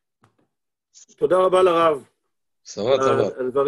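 A middle-aged man speaks over an online call.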